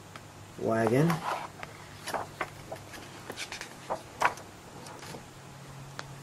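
Glossy paper pages rustle and flap as they are turned by hand.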